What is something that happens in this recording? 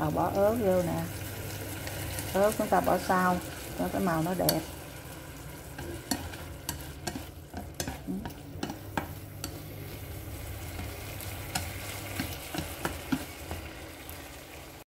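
Food sizzles gently in a frying pan.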